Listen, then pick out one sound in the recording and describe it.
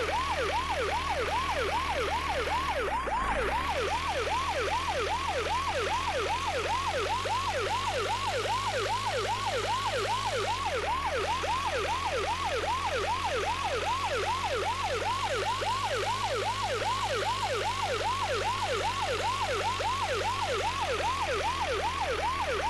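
An ambulance siren wails in rapid, steady whoops.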